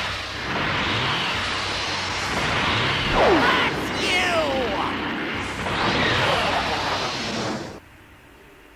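An energy blast roars and crackles loudly.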